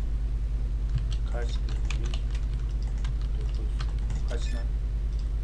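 Keypad buttons click as a code is entered.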